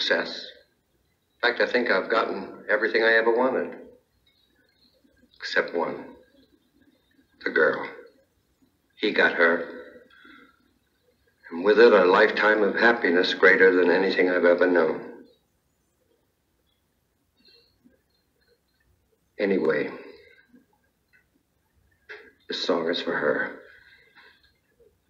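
A man speaks into a microphone, heard through a loudspeaker in a room.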